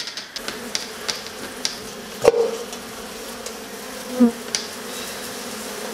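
A knife scrapes and cuts through honeycomb.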